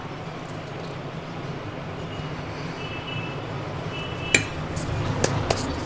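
A spoon scrapes and taps as batter is dropped into a paper cup.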